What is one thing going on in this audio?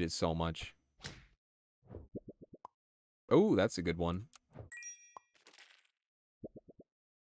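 Short cartoonish game sound effects pop and chime.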